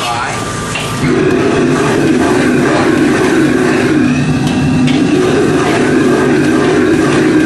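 A gas wok burner roars.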